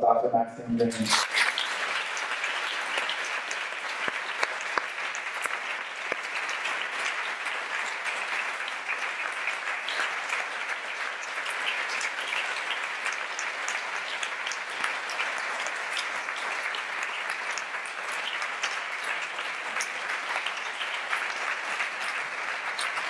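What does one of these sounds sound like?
An audience applauds steadily.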